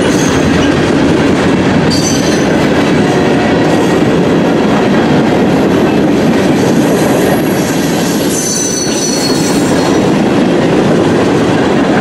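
A freight train rumbles past close by, its wheels clattering and squealing on the rails.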